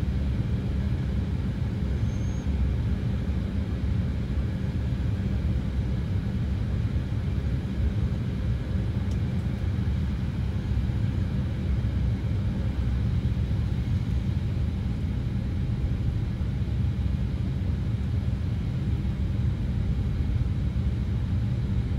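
A plane's engines drone with a steady, low roar.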